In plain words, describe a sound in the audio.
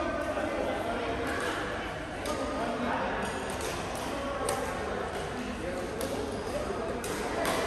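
Several men chatter in a large echoing hall.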